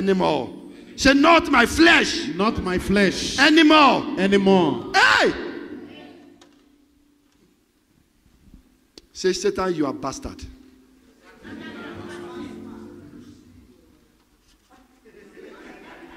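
A man preaches with animation through a microphone and loudspeakers, echoing in a hall.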